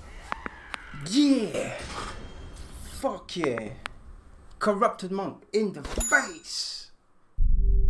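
A young man talks excitedly into a close microphone.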